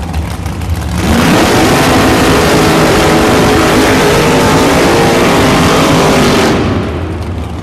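Two drag racing cars launch with a deafening, crackling roar that fades away down the track.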